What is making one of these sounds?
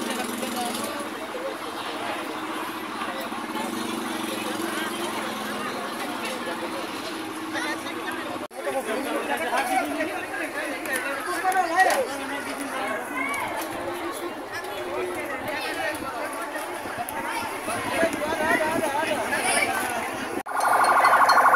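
A crowd of people shouts and talks excitedly outdoors.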